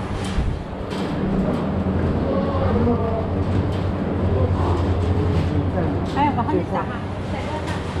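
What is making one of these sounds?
Adults chat casually nearby.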